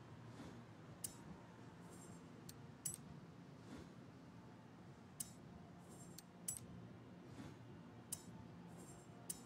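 Short electronic clicks sound as menu choices change.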